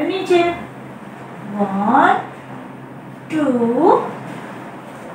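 A young woman speaks slowly and clearly into a nearby microphone.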